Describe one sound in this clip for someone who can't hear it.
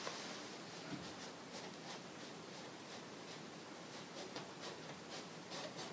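A paintbrush softly brushes and taps against canvas.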